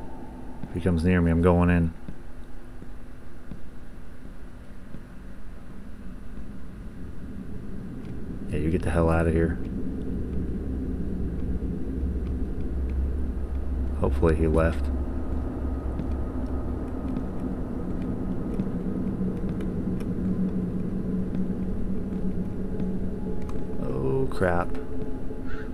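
A man speaks in short, drawn-out bursts close to a microphone.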